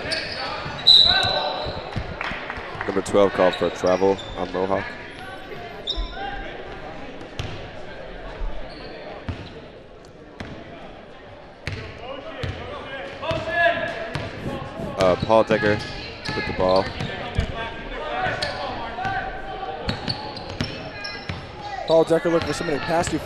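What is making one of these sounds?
A crowd shouts and cheers in an echoing gym.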